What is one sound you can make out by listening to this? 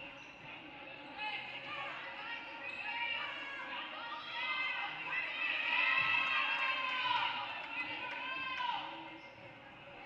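Sneakers squeak on a wooden court in an echoing gym.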